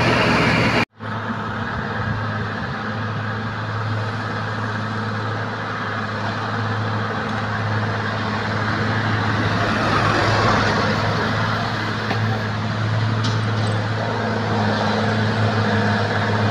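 A truck engine rumbles as the truck drives slowly past.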